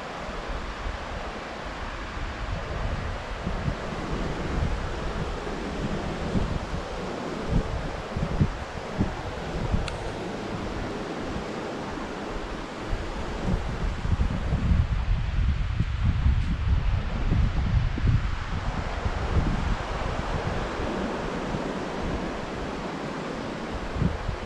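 Waves wash onto a beach nearby.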